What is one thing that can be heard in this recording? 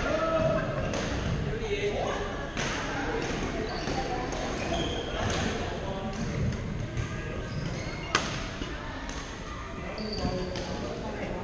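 Shuttlecocks are hit with rackets in a large echoing hall.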